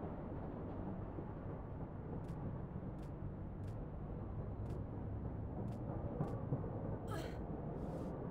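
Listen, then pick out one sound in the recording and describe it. Hands knock against a metal lattice while climbing.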